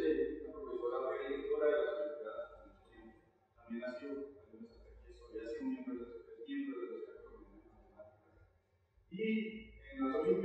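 A man reads aloud calmly through a microphone in a large echoing room.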